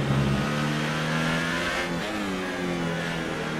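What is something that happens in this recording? A racing car engine drops in pitch as the car slows into a corner.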